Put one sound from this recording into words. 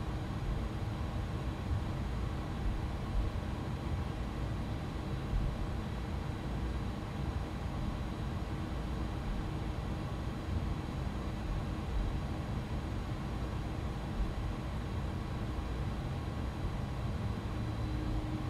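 Jet engines rumble steadily at low power.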